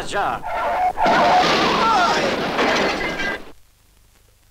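A car crashes loudly with a rushing roar.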